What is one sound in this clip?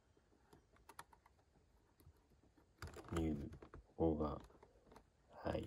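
A pen tip taps a keyboard key with soft clicks.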